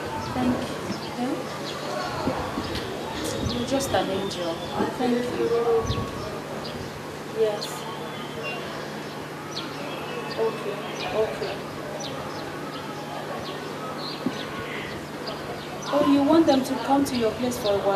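A woman speaks emotionally into a phone, close by, her voice rising at times.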